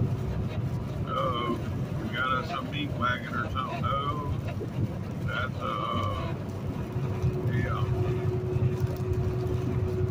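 A windshield wiper swipes across the glass.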